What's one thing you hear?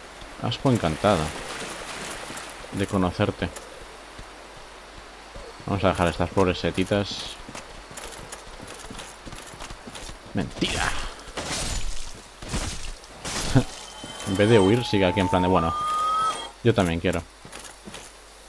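A young man talks with animation into a headset microphone, in short bursts.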